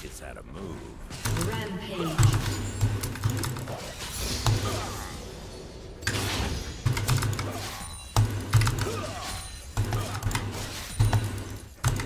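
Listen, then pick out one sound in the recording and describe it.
Game sound effects clash and zap during a fight.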